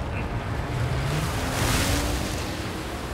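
Water splashes loudly as a jet ski hits it.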